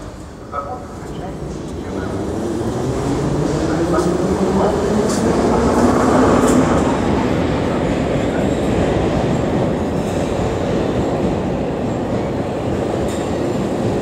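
A subway train rumbles into the station with a rising roar.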